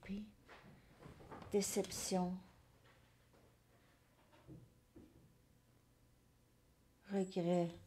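A woman speaks calmly, close to the microphone.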